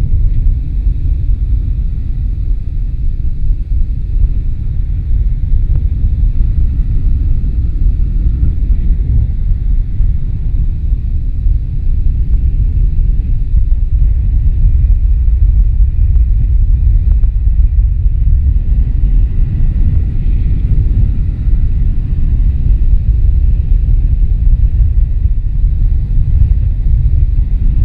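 Wind rushes and buffets loudly and steadily.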